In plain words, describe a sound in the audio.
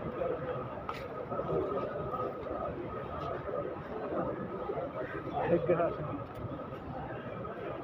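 Several men talk in the background, outdoors.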